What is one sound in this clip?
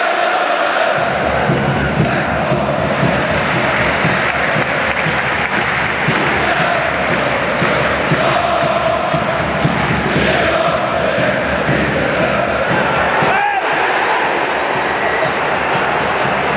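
A large crowd roars and cheers loudly.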